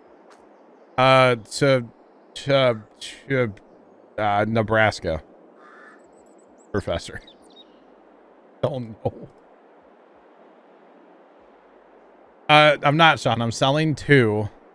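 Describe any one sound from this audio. A man talks casually into a close microphone, in short bursts.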